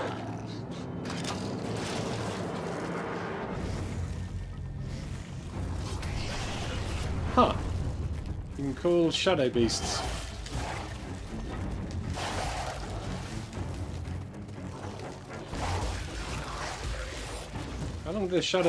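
Game combat sounds clash and whoosh.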